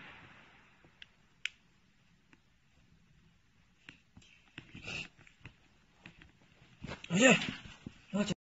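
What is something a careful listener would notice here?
Plastic film crinkles and rustles as it is peeled away.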